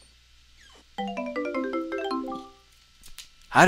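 A short rising chime melody plays as a chest opens.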